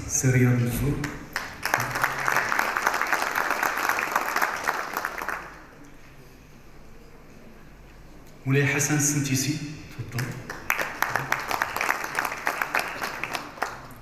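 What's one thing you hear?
A middle-aged man speaks through a microphone in a large hall, in a measured, animated tone.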